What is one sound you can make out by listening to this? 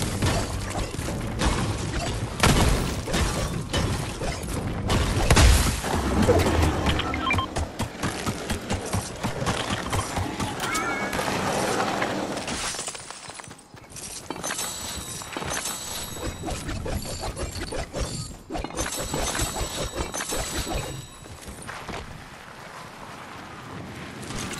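Game characters run with quick footsteps.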